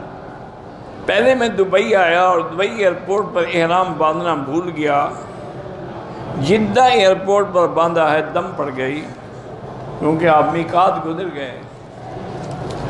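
An elderly man speaks with feeling into a microphone, his voice echoing in a large hall.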